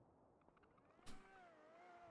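A door opens with a sharp knock.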